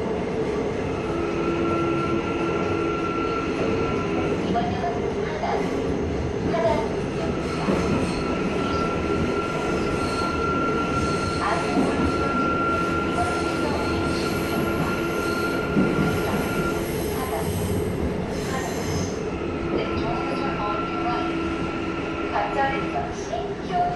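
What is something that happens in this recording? Electric motors of a subway train whine in steady tones.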